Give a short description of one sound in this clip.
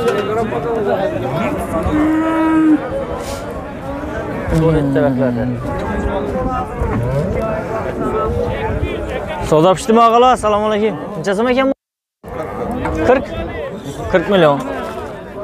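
Many men talk and call out around outdoors in a crowd.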